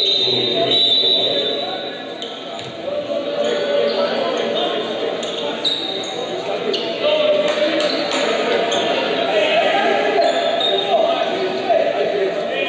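A crowd murmurs and chatters throughout a large echoing gym.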